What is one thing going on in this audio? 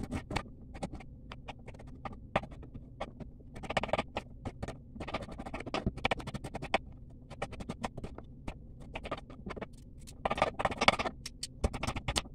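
A knife taps and chops on a cutting board.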